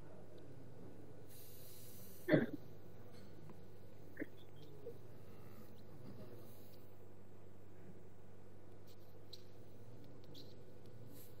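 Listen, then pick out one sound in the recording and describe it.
A suction tube hisses steadily.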